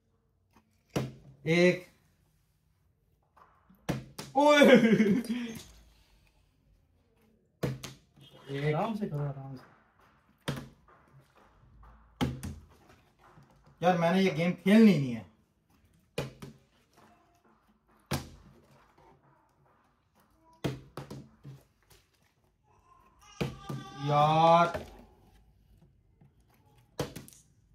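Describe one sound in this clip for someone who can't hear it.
A plastic water bottle is tossed and thuds onto a wooden table.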